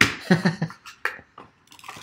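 A knife slices through plastic wrap.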